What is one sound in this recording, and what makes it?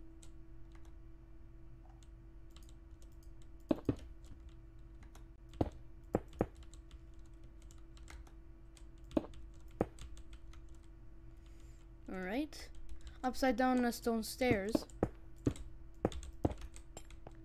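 Soft footsteps patter along.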